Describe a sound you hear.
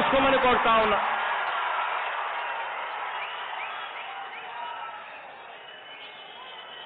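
A large crowd cheers and whistles outdoors, slowly fading.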